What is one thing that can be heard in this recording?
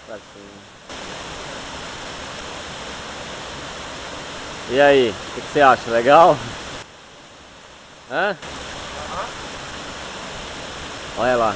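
A waterfall rushes and splashes steadily nearby.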